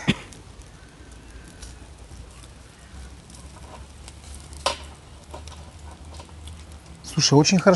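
Meat sizzles softly over hot coals.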